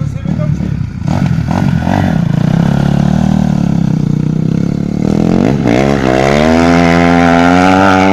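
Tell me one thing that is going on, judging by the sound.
A dirt bike engine revs loudly and rises in pitch as the bike speeds away.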